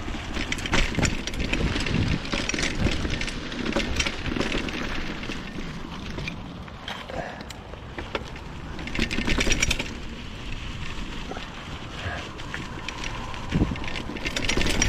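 Bicycle tyres crunch and rattle over a bumpy dirt trail.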